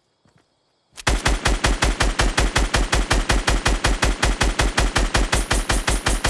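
An automatic rifle fires in a rapid, sustained burst.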